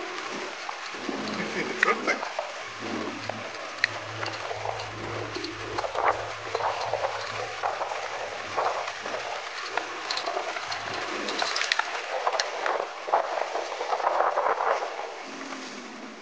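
Water splashes and rushes against a vehicle driving through a river.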